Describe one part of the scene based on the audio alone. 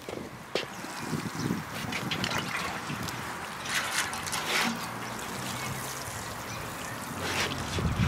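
Water from a watering can sprinkles onto soil.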